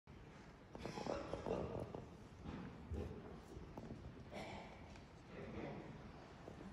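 A concert band plays in a large echoing hall.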